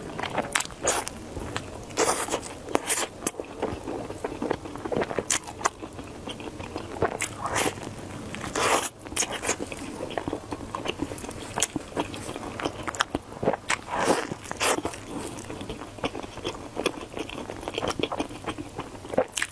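A woman bites into crusty bread with loud crunches close to a microphone.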